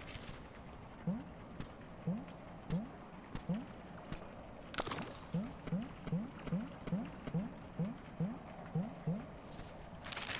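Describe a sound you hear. Soft, rhythmic game footstep blips sound as a small creature walks along.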